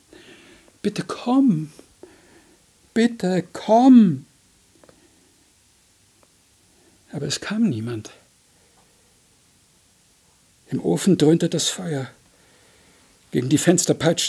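An elderly man reads aloud expressively into a microphone, with pauses between phrases.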